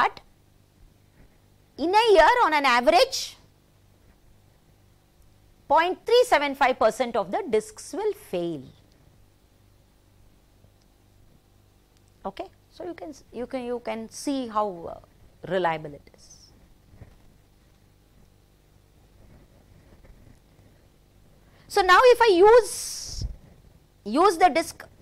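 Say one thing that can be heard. An elderly woman speaks calmly into a close microphone, in short phrases with pauses.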